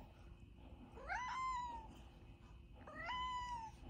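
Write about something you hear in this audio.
A cat meows twice in rising, high cries.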